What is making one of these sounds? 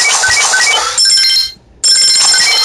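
Coins jingle in quick succession.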